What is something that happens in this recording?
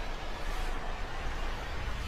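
A waterfall splashes into a pool.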